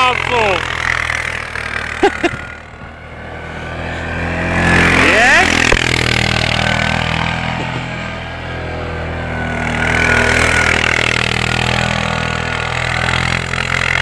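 A quad bike engine revs up and down nearby.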